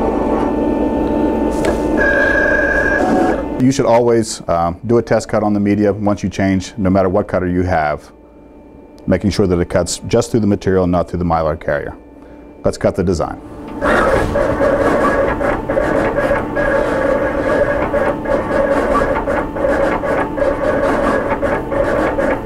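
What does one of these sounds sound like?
A vinyl cutting machine whirs and buzzes as its cutting head moves back and forth.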